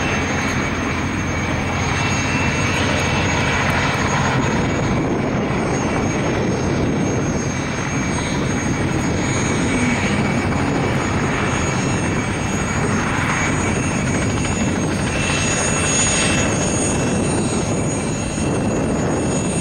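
Wind blows steadily across an open field outdoors.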